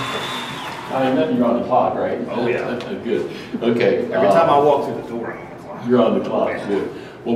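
Two men chat face to face.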